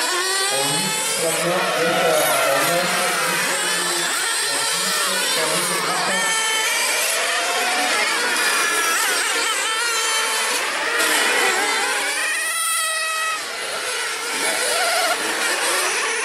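Small model car engines whine loudly, rising and falling in pitch as the cars race past.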